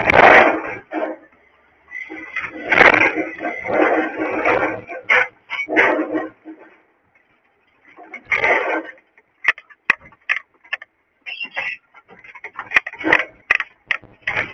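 A cupboard door knocks and rattles as it swings.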